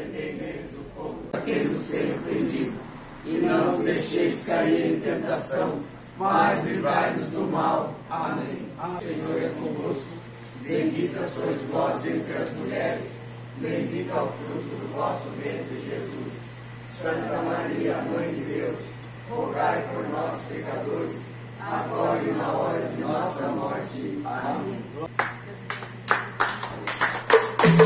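A small group of older men and women sing together close by.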